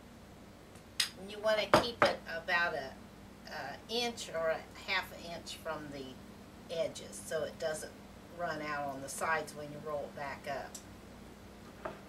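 An elderly woman talks calmly and close by.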